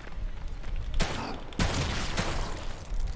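A heavy blow strikes with a thud.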